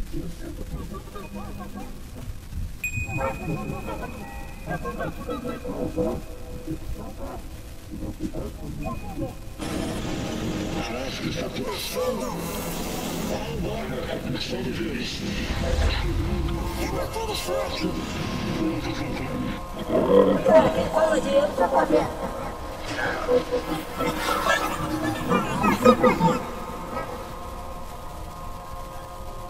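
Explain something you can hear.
Electronic synthesizer tones drone and warble, swelling louder at times.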